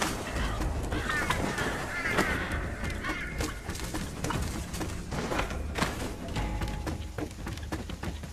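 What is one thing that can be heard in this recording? Footsteps thud on creaking wooden planks.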